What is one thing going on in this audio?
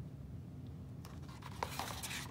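A book page rustles softly under a hand.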